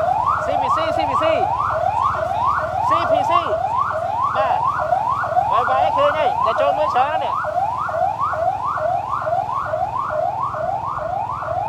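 A police siren on a pickup truck yelps in fast rising sweeps.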